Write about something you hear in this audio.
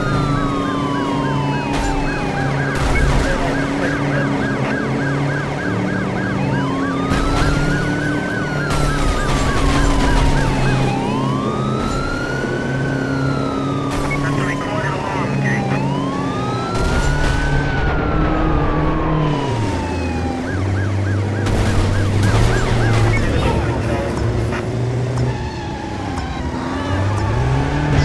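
A heavy truck engine roars and changes pitch steadily.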